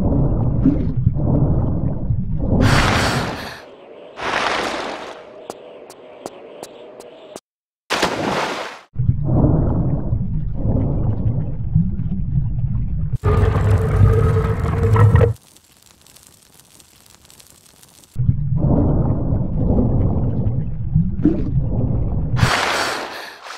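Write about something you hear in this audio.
A muffled underwater rumble surges and fades.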